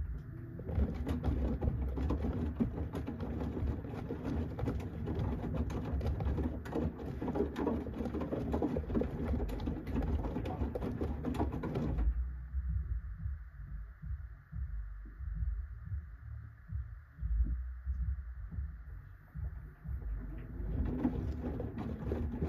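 A washing machine hums and rumbles low.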